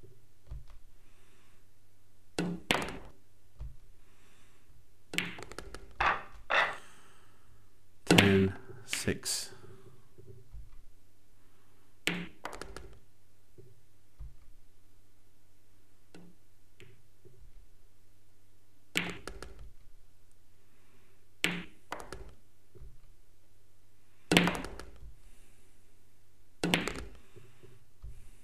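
Pool balls thud into pockets.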